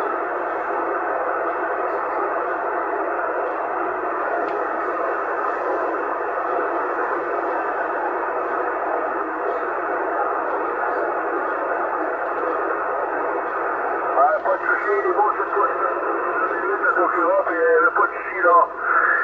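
Radio static hisses steadily through a loudspeaker.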